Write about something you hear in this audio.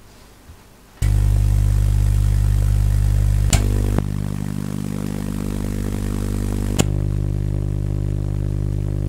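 A Tesla coil buzzes loudly as sparks crackle from its top.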